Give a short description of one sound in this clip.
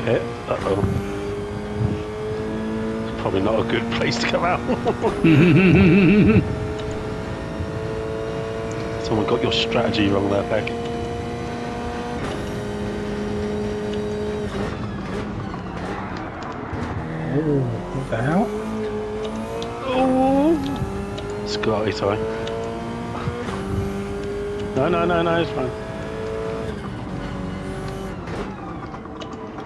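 A racing car engine drones and whines as it shifts up through the gears.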